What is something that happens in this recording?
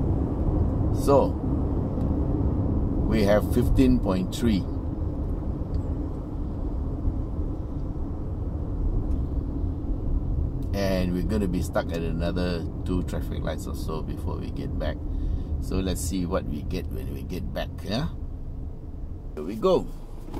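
A middle-aged man talks calmly from the driver's seat, close by.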